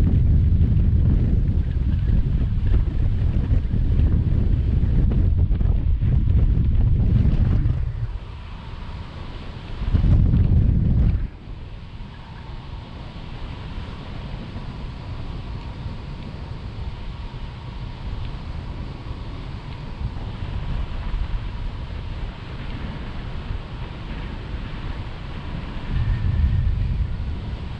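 Wind rushes and buffets loudly past, in strong gusts.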